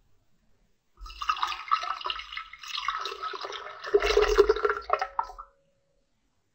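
Liquid pours into a glass mug.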